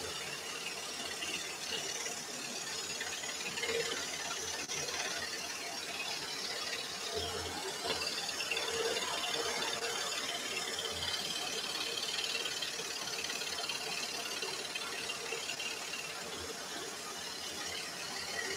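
A scroll saw blade buzzes rapidly as it cuts through thin wood.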